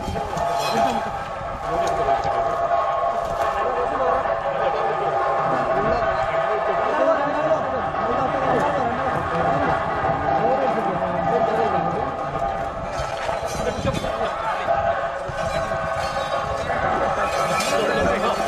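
A crowd of men talk and call out nearby outdoors.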